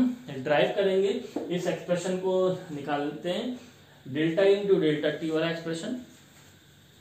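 A man speaks calmly and clearly, close by.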